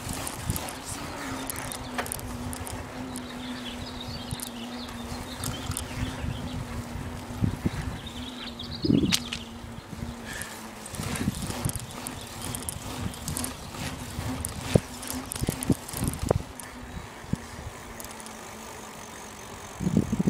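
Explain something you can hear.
Wheels roll and rumble steadily along a paved road.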